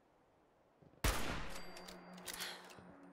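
A rifle fires a single loud shot that echoes away.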